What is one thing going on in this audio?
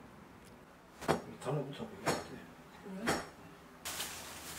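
A knife taps on a cutting board, slicing avocado.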